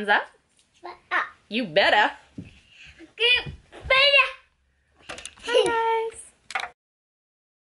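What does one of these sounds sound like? A young woman speaks cheerfully and close by.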